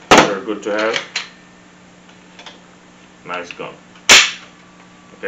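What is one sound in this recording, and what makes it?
A handgun's metal parts click sharply.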